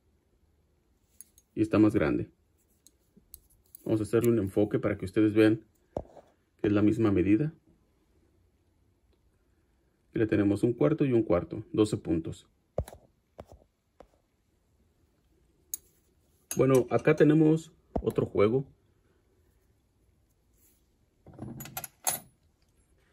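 Small metal wrenches clink together in a hand.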